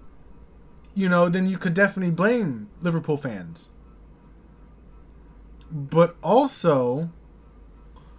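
A young man speaks with animation, close to a microphone.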